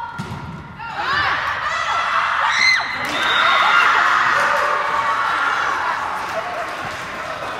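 Spectators cheer and clap after a point.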